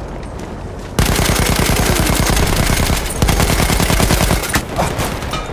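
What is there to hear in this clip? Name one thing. A machine gun fires rapid, loud bursts close by.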